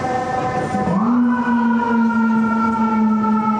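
A fire truck air horn blares.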